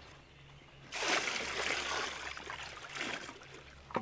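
Water pours from a jug into a trough.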